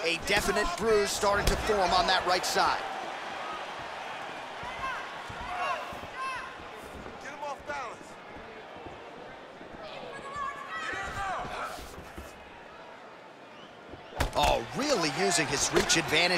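Punches thud against a body.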